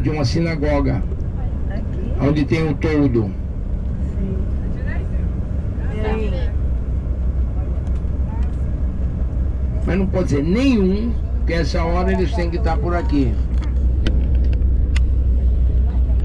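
A vehicle's engine and tyres rumble low and steady while driving.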